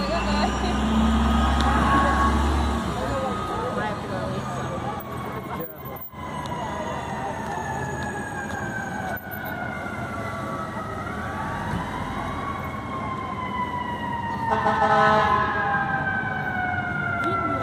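Traffic hums steadily on a busy street.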